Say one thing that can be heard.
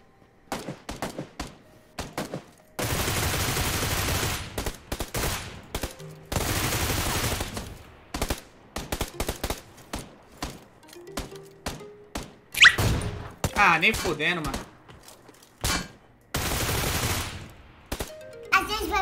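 Rapid gunshots crack from a video game.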